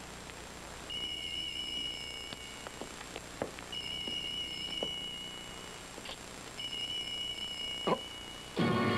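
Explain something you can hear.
A telephone rings in repeated bursts.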